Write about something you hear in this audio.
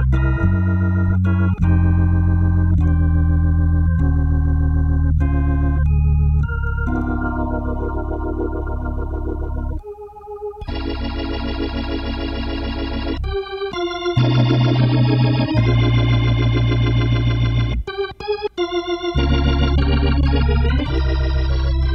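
Organ bass pedals play low notes underneath.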